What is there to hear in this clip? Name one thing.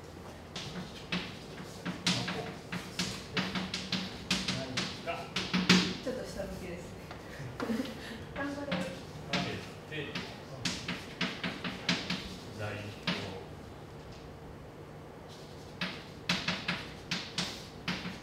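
Chalk taps and scrapes on a blackboard in quick strokes.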